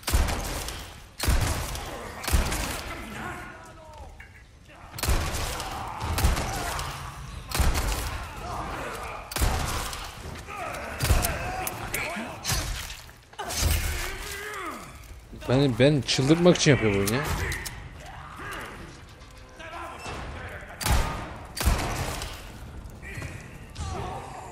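Gunshots ring out sharply, one after another.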